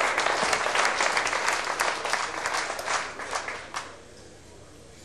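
An audience applauds loudly, then the applause dies away.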